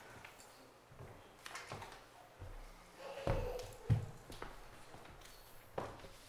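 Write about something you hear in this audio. Footsteps tap across a wooden floor.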